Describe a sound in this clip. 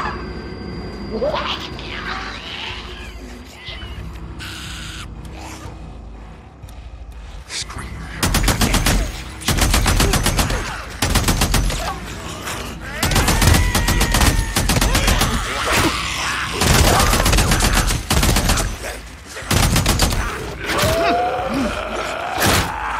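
Creatures snarl and shriek nearby.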